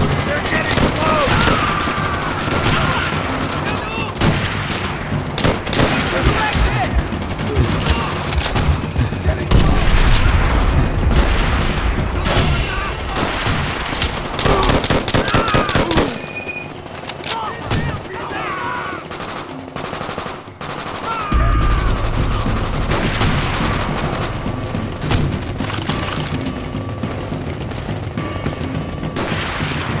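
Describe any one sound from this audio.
Rifle shots crack and echo in a battle.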